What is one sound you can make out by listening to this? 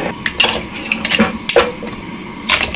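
Metal tongs clink against a metal pot.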